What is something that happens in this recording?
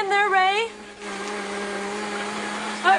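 A blender whirs steadily.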